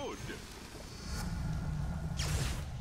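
Bursts of noise rumble during a fight.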